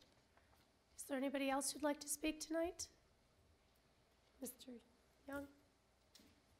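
A second woman speaks calmly into a microphone.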